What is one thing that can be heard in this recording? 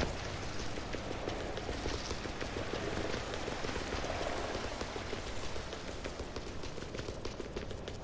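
Water rushes steadily in a stream.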